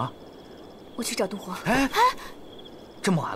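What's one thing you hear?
A young woman asks a short question, close by.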